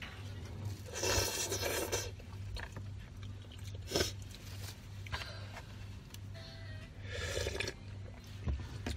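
A young woman slurps noodles loudly up close.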